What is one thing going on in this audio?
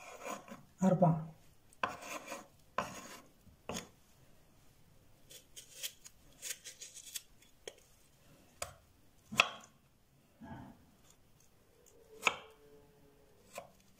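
A knife taps and scrapes on a wooden cutting board.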